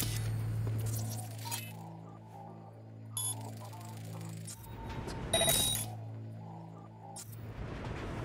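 Soft electronic hums and beeps sound as a scanning mode switches on.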